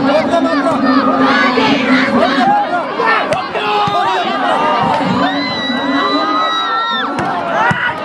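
A large crowd outdoors shouts and cheers excitedly.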